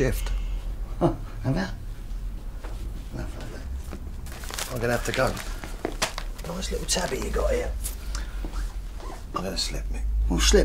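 An older man speaks calmly.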